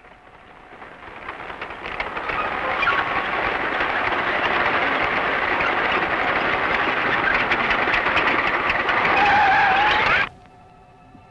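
An armoured truck's engine rumbles loudly as the truck drives past.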